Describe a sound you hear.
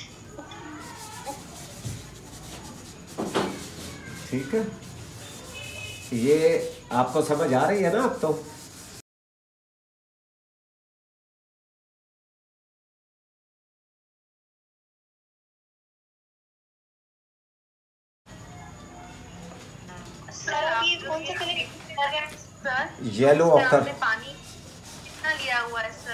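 A brush scrapes softly across canvas.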